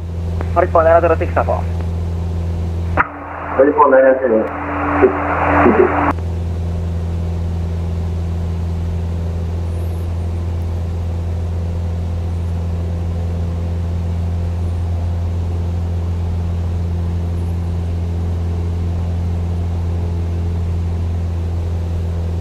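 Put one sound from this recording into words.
A light aircraft engine drones steadily.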